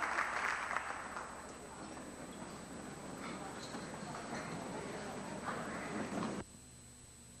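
A crowd murmurs and chatters in a big hall.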